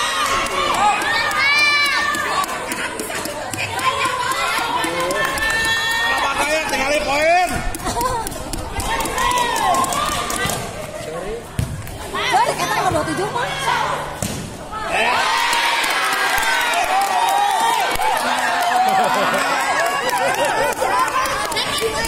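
A crowd of young players and onlookers shouts and cheers outdoors.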